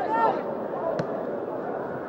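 A football is struck hard with a single thud.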